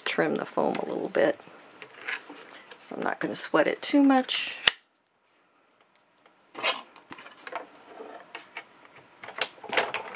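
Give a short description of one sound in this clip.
Paper rustles and slides as hands handle it close by.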